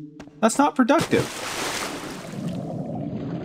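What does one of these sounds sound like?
Water splashes loudly as someone plunges in.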